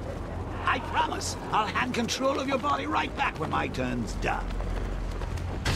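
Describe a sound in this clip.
Wind rushes past during a glide.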